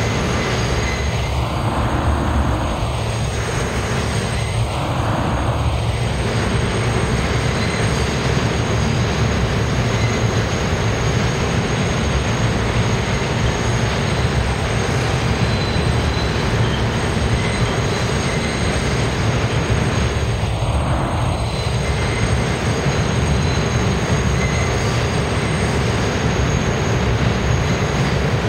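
A subway train rumbles and clatters past on the tracks.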